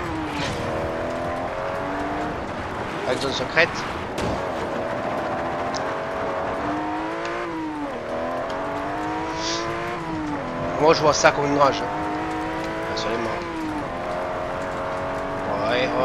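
A car engine revs and roars, rising and dropping in pitch as gears change.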